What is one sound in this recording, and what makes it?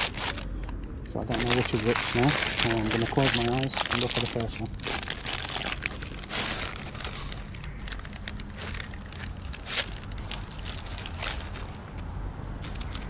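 A paper bag crinkles and rustles close by.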